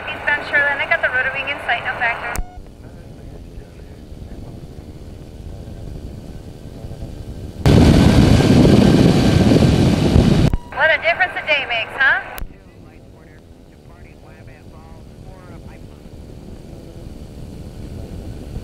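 A small aircraft engine drones.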